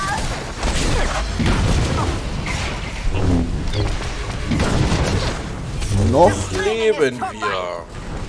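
Fiery blasts explode with deep booms.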